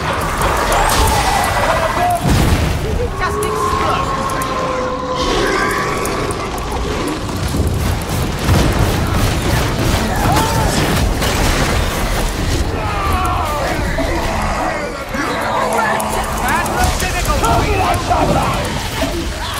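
Electricity crackles and buzzes in sharp bursts.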